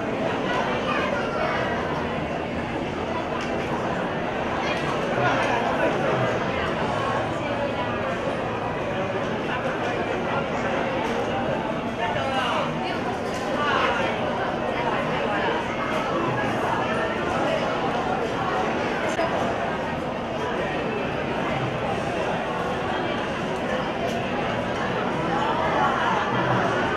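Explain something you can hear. A crowd of men and women chatter throughout in a large room.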